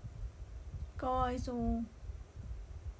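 A young woman nearby makes a short, high-pitched vocal sound.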